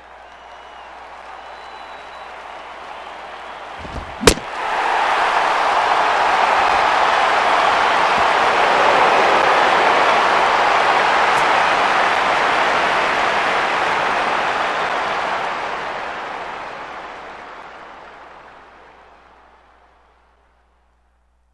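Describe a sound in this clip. A large stadium crowd cheers loudly and then slowly fades.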